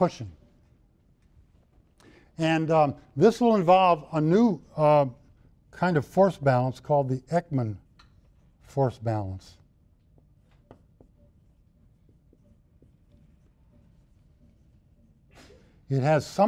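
A middle-aged man lectures calmly.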